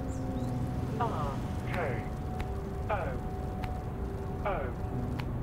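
Short falling electronic blips sound, one after another.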